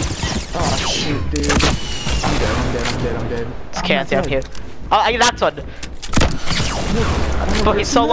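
Game gunfire cracks in quick bursts.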